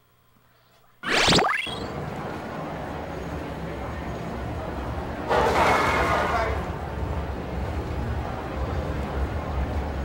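Loud video game music and effects play.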